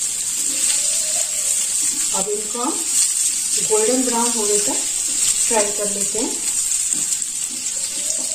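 A wooden spatula scrapes and stirs potatoes in a pan.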